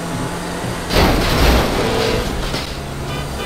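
A car smashes through an object with a crash of debris.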